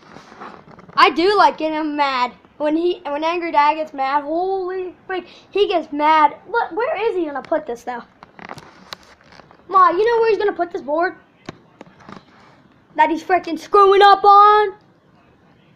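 A child talks close up with animation.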